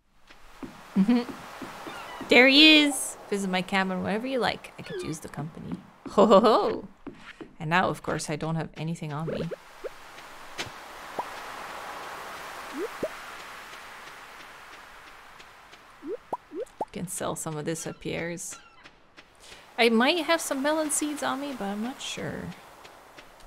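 A young woman talks casually and with animation into a nearby microphone.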